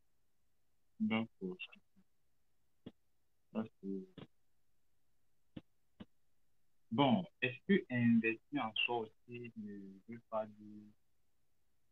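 A young man speaks in short bursts with pauses, heard through an online call.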